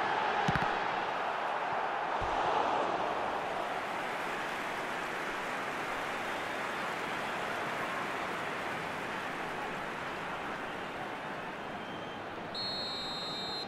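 A large stadium crowd roars and murmurs steadily throughout.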